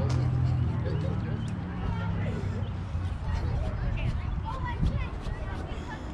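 Players call out and chatter at a distance across an open field.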